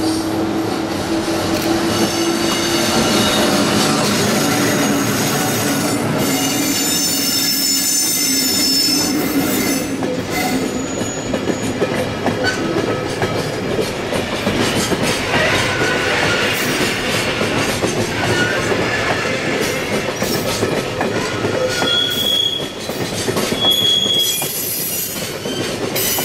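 A long freight train's wheels rumble and clack steadily over the rails.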